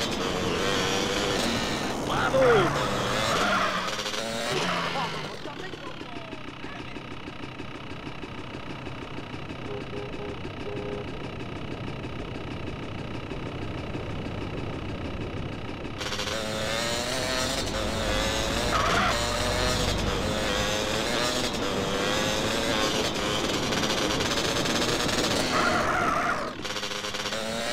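A motorbike engine revs and roars as it rides.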